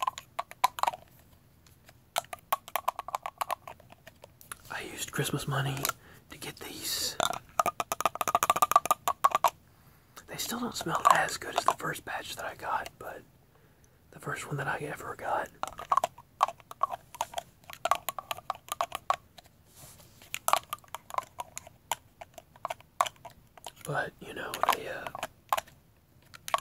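Metal parts click and clink as they are turned in the hands.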